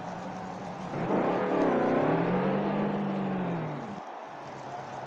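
A race car roars past and its engine sound rises and falls.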